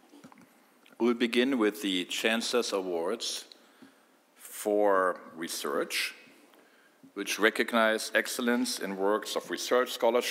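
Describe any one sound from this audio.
A middle-aged man speaks calmly into a microphone over loudspeakers in a large hall.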